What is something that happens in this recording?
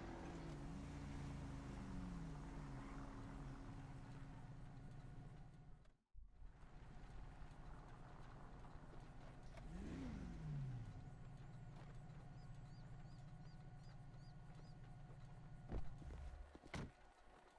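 A car engine hums steadily, then cuts off.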